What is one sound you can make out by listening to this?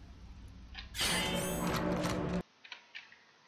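A heavy metal grate crashes and breaks apart.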